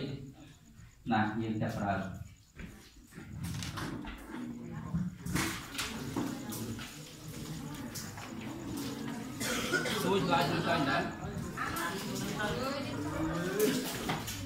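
Boys murmur and talk quietly among themselves.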